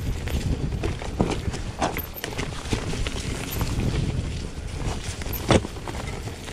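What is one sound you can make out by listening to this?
Bicycle tyres roll and crunch over a rocky dirt trail.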